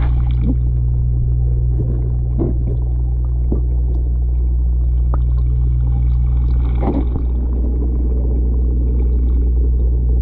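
Water bubbles and gurgles softly in a tank.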